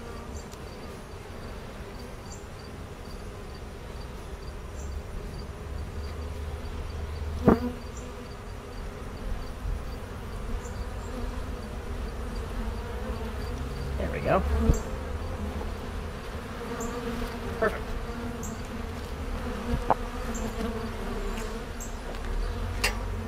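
Bees buzz close by in a steady hum.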